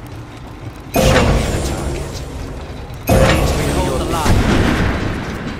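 Loud whooshing game effects burst out twice.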